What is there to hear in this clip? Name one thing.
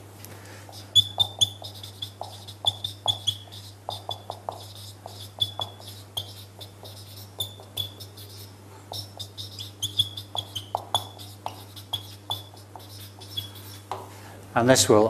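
A marker squeaks and taps as it writes on a whiteboard.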